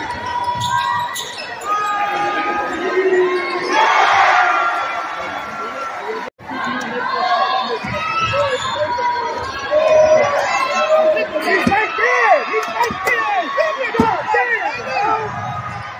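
A crowd cheers and murmurs in a large echoing gym.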